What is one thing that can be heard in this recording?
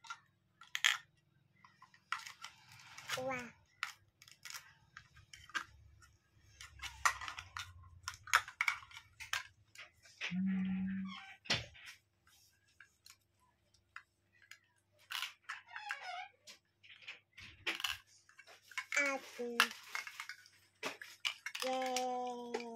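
Plastic toy pieces clack and tap together.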